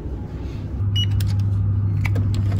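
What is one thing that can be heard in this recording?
A door lock clicks and clatters.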